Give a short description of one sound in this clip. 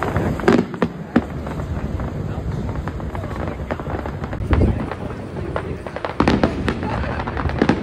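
Fireworks crackle and boom in the open air.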